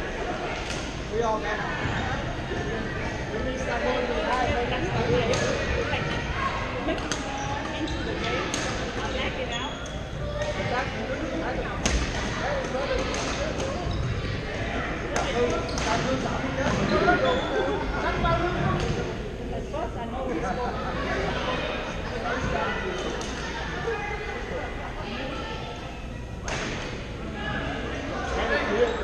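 Badminton rackets strike shuttlecocks with sharp pops in a large echoing hall.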